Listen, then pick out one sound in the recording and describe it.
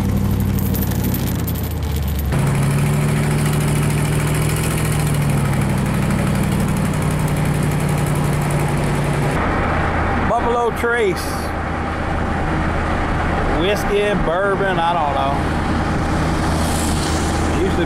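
A vehicle engine hums steadily from inside a moving car.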